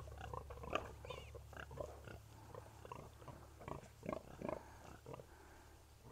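Newborn piglets squeal and squeak close by.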